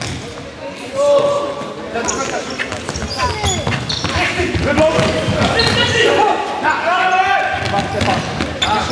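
Sneakers squeak sharply on a hard indoor court.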